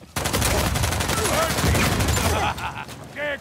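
A pistol fires rapid shots in quick succession.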